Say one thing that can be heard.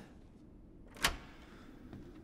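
A door lock clicks open.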